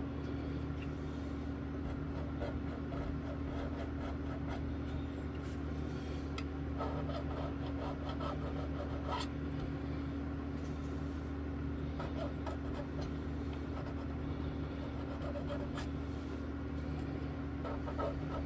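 Hands handle guitar strings with light metallic clicks and scrapes.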